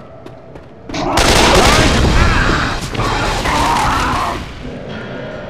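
A creature snarls and screeches up close.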